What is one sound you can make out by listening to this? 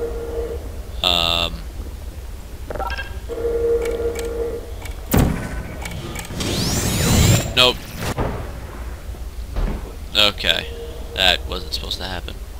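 A sci-fi gun fires sharp electronic zaps several times.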